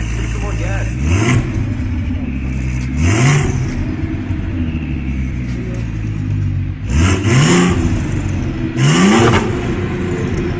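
A car engine revs sharply in short bursts, several times.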